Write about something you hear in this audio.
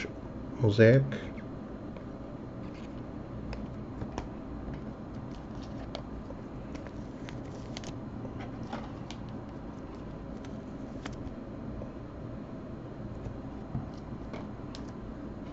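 Trading cards rustle and click as hands shuffle them close by.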